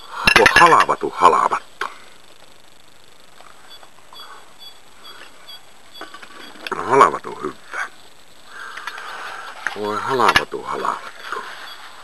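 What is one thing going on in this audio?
An elderly man speaks slowly and close up.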